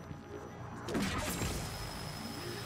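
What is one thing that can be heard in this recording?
An energy beam weapon fires with a buzzing hum.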